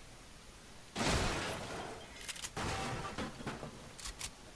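Gunfire bursts and explosions crack in a video game.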